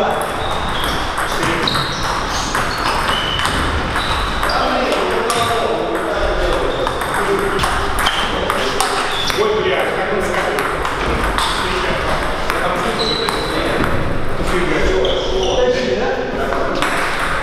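Ping-pong balls click sharply against paddles and tables in a large echoing hall.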